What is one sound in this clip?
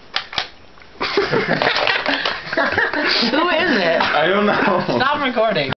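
A young man laughs loudly, close by.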